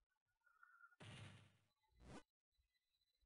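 Game sound effects whoosh in short bursts.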